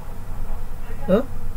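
A middle-aged man speaks briefly through a microphone.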